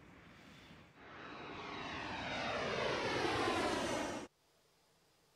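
A jet engine whines and roars, rising in pitch as it spools up.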